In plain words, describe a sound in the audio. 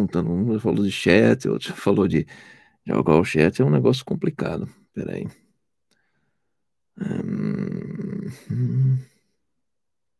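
A middle-aged man speaks calmly and close to a microphone.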